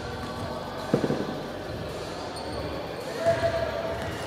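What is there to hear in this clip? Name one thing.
A basketball bounces on a wooden floor with hollow thuds.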